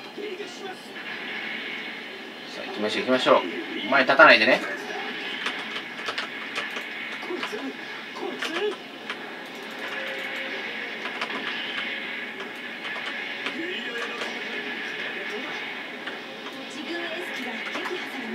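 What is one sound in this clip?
Explosions boom from a video game through a loudspeaker.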